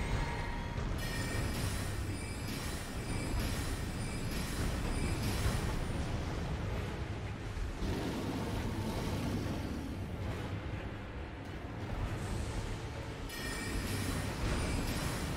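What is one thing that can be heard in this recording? Magic spells whoosh and shimmer.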